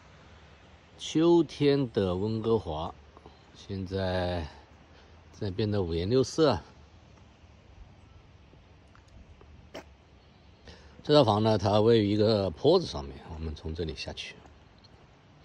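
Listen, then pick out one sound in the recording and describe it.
A man speaks calmly, close to the microphone.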